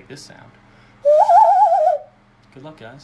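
A young man blows a warbling whistle through his cupped hands.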